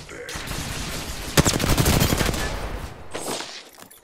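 An energy weapon fires rapid crackling bursts.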